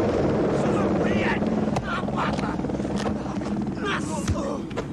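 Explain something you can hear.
Men shout outdoors.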